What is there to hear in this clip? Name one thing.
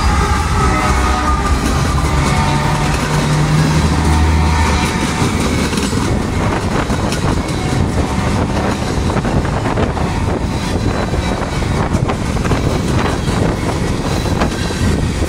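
Freight cars rattle and clatter over the rails.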